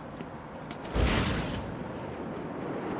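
A cape whooshes and flaps through the air.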